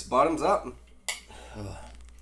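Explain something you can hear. Glasses clink together once.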